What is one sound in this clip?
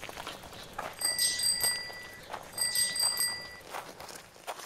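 A bicycle bell rings twice, close by.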